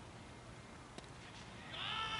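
A cricket bat cracks against a ball outdoors.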